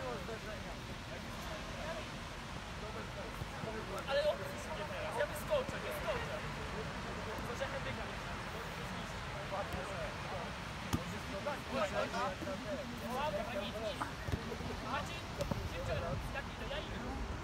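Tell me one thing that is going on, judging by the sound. A ball thuds as it is kicked.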